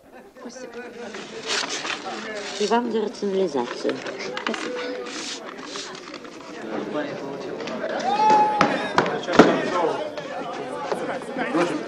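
A crowd of young men chatters and murmurs nearby.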